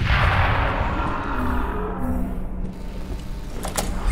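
A metal door swings open with a creak.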